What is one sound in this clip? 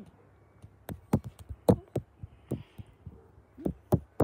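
Hands rub and pat a dog's fur close by.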